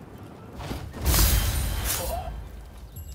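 A sword slashes into a body with a heavy, wet impact.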